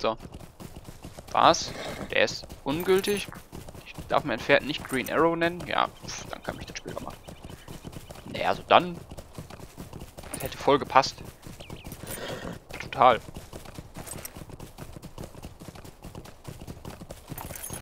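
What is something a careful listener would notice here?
A horse's hooves thud as it gallops over grass.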